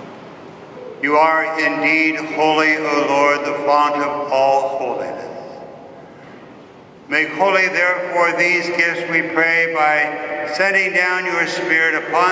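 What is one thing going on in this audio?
A man chants in a sung voice through a microphone in a large echoing hall.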